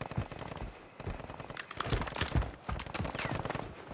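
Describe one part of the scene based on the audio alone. Footsteps crunch on dry dirt and rock.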